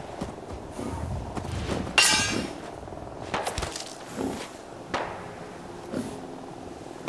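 Footsteps rustle through dry brush.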